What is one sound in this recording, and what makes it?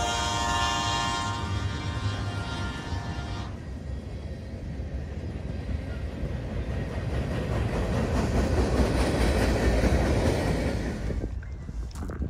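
Freight cars clatter and rumble past close by.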